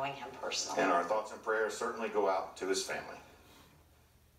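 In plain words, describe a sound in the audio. An elderly man speaks calmly over a television speaker.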